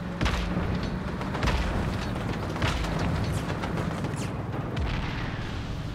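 Explosions blast and rumble.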